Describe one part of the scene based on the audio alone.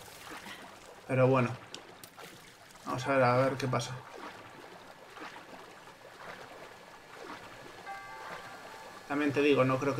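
Water splashes softly around a small raft gliding along.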